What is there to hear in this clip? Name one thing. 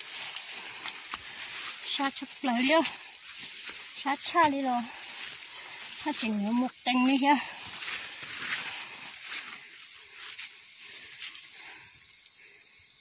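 Leafy branches rustle and swish close by.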